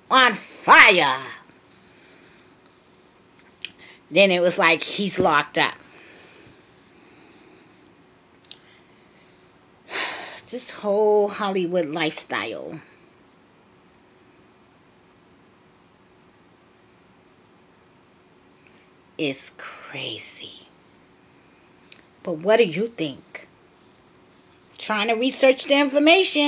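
A woman speaks close to the microphone in short, emotional bursts with long pauses.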